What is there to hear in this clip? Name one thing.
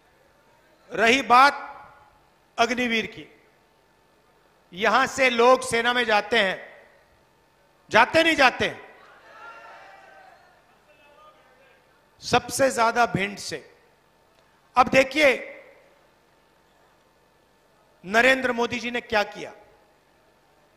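A man speaks forcefully into a microphone over loudspeakers in short bursts with pauses.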